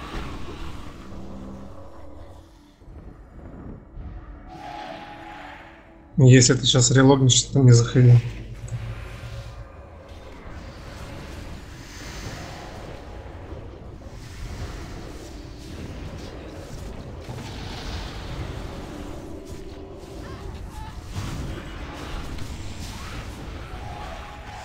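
Spells and weapon blows crackle and whoosh in a fight.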